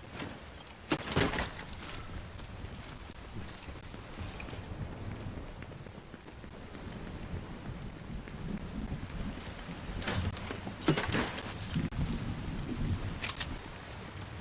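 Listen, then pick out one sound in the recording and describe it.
A short chime rings as items are picked up.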